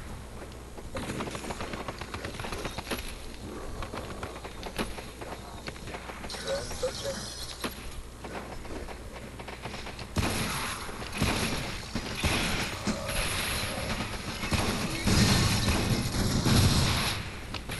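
A game gun fires rapid shots.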